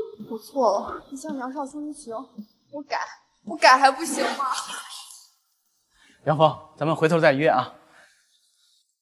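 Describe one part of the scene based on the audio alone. A young woman pleads in an upset voice, close by.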